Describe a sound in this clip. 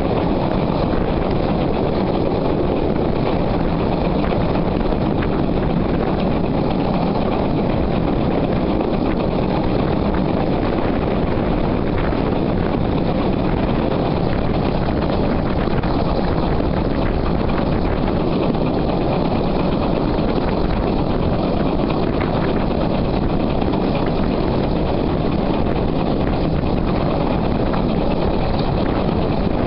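Train wheels rumble and clatter over rail joints.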